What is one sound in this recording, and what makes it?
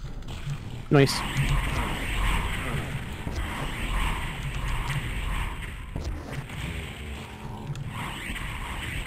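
Gunfire and explosions boom repeatedly in a video game.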